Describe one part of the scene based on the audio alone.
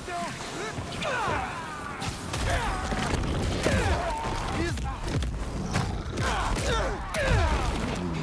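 Fists and blows thud in a fast brawl.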